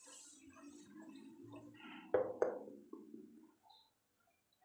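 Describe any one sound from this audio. A spatula scrapes and stirs thick sauce in a metal pot.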